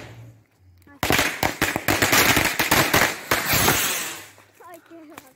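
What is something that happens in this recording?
A firework rocket whooshes and crackles as it shoots up.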